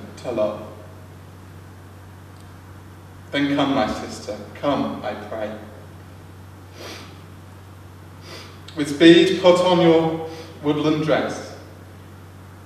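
A young man speaks slowly and solemnly, with pauses.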